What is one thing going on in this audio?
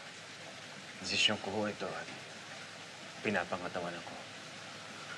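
A young man speaks quietly and hesitantly, close by.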